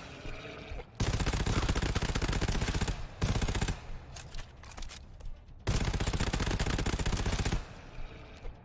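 A rapid-fire gun fires loud, long bursts.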